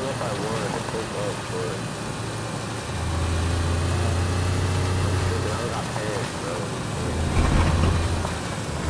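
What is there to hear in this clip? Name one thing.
A car engine hums steadily and grows louder at times.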